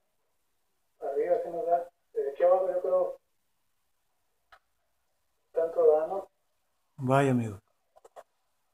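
A man speaks calmly in short bursts close by.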